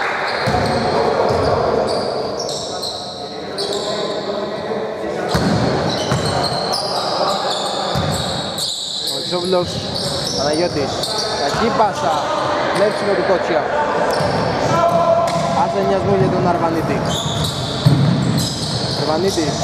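Sneakers squeak sharply on a wooden court in a large echoing gym.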